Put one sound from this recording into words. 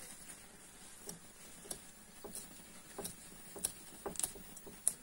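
An uncapping fork scrapes across wax honeycomb.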